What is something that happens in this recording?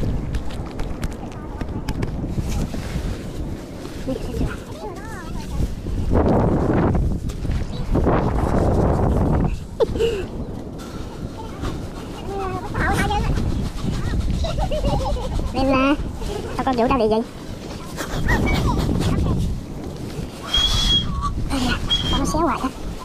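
A clam tube pushes and squelches into wet sand.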